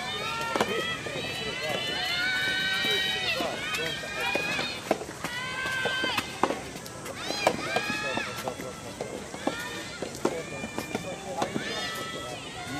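Young players shout loudly and drawn out outdoors.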